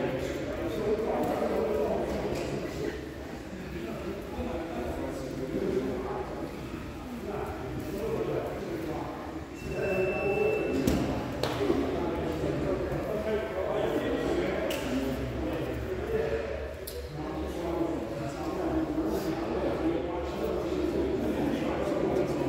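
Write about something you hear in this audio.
Several people talk at once in a large echoing hall.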